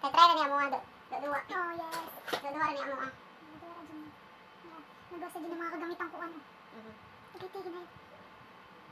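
A middle-aged woman talks nearby in a lively way.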